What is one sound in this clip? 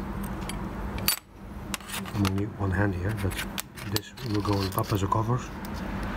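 Small metal parts clink and tap on a hard surface.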